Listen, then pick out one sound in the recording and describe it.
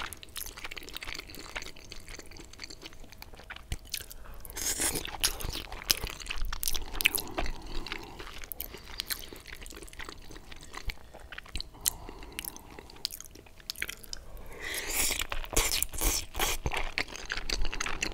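A man chews spaghetti wetly, close to a microphone.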